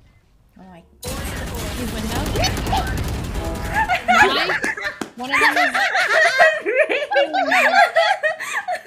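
A young woman laughs loudly into a nearby microphone.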